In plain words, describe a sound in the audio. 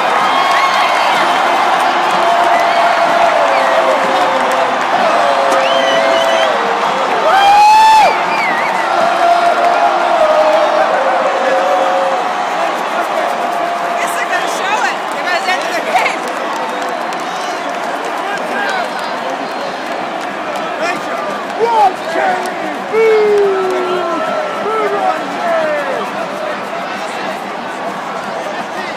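Young fans nearby whoop and shout with excitement.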